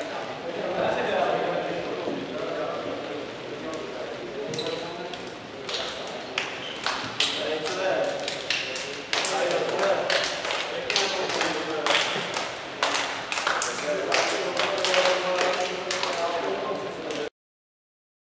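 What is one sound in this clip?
A group of young men shout and cheer in an echoing hall.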